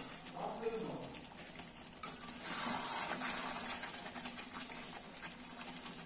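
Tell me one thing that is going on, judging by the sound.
Chicken sizzles gently in a wok.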